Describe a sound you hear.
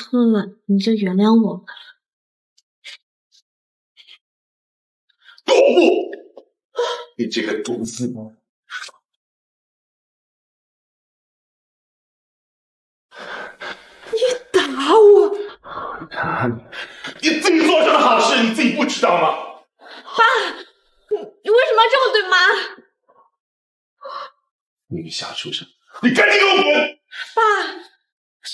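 A young woman pleads in a distressed voice close by.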